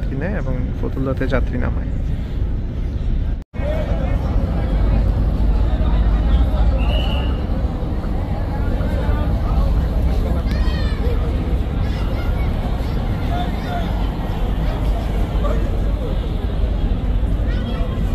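A large crowd chatters and calls out nearby outdoors.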